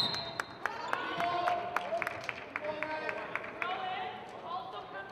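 A basketball bounces steadily on a wooden floor in an echoing gym.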